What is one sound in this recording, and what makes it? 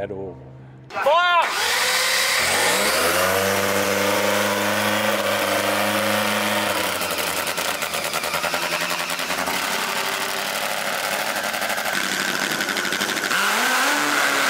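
A loud engine revs and roars.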